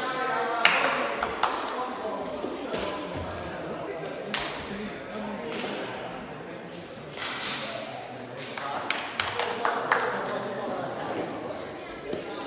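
Shoes squeak and thump on a hard floor in a large echoing hall.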